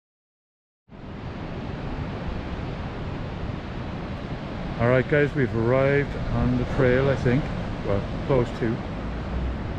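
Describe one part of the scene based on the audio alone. Waves wash against rocks in the distance.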